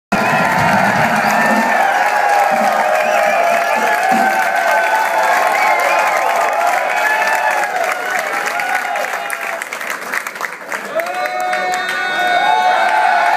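A drum kit plays a beat.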